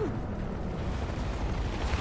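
A helicopter's rotor thuds overhead.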